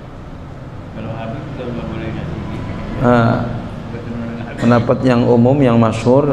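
A man speaks calmly into a microphone, heard through a loudspeaker.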